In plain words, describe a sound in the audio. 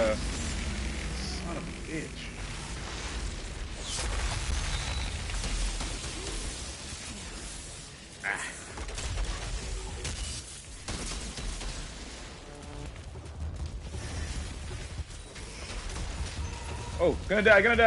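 Energy blasts and gunfire burst loudly in quick bursts.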